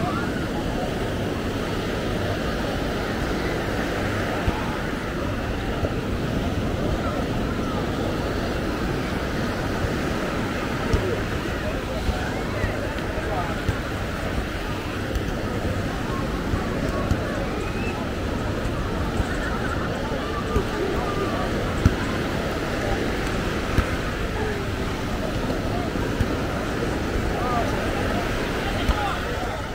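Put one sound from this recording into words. A crowd of beachgoers chatters all around outdoors.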